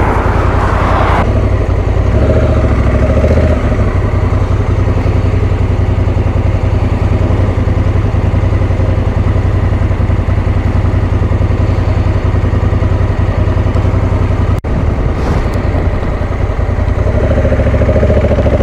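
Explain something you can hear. A motorcycle engine idles with a steady, throbbing rumble close by.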